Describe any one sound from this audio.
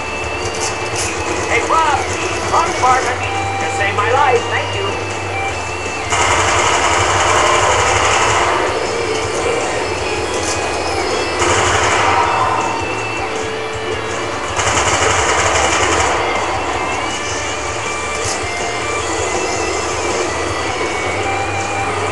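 Game music and effects play steadily through a television speaker.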